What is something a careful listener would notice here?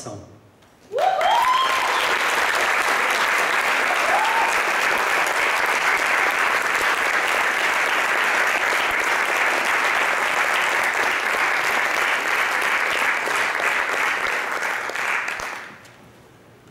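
An audience applauds loudly and steadily in a large hall.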